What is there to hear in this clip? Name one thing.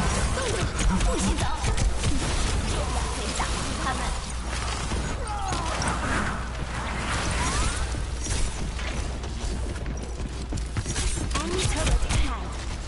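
A video game blaster fires rapid electronic bursts.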